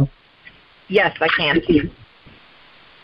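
A young woman speaks clearly nearby.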